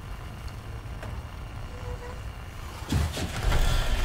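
A heavy metal door creaks and swings open.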